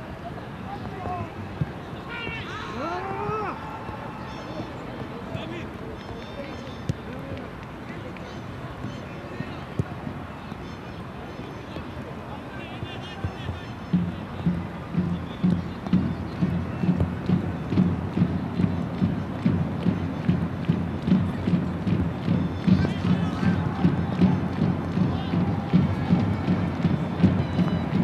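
A distant stadium crowd murmurs in a large open space.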